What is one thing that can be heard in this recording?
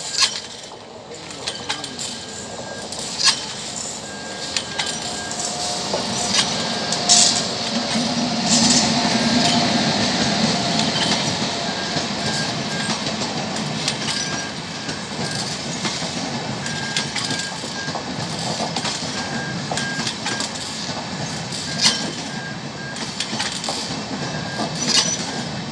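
A train approaches and rumbles past close by.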